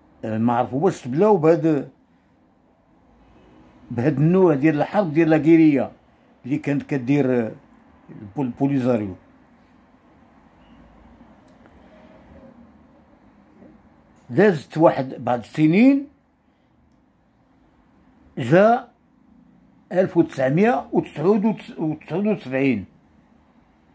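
An elderly man talks calmly and close to a microphone, with pauses.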